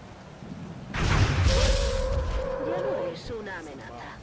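A loud explosion booms and roars.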